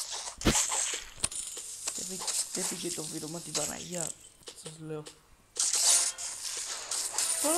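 Fruit splatters with wet, juicy squelches.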